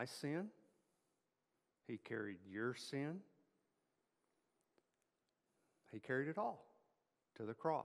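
A middle-aged man speaks with animation into a microphone, in phrases with pauses.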